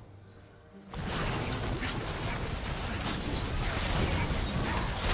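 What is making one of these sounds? Video game spells crackle and whoosh in a loud, busy fight.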